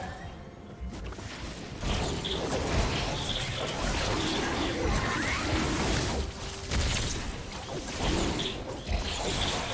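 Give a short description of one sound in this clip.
Game spell effects whoosh and crackle in quick bursts.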